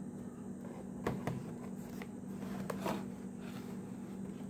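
Plastic blister packs rustle and tap softly as hands handle them.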